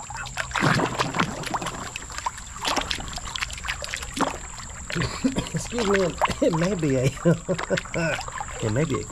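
A stream burbles steadily.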